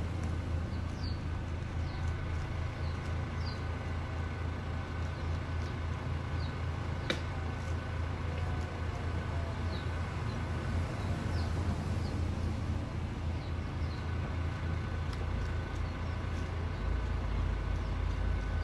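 A cat laps water from a bowl with quick wet licks.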